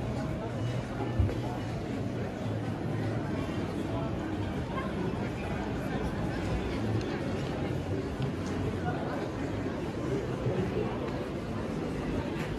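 Footsteps tap on the pavement.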